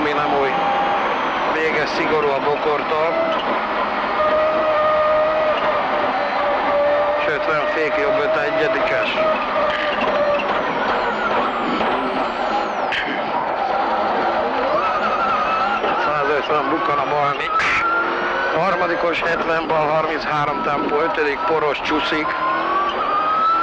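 A rally car engine roars loudly inside the cabin, revving up and down through the gears.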